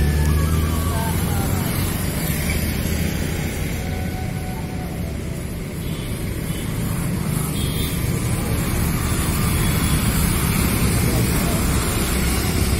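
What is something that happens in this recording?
Motorbikes ride past on a road outdoors.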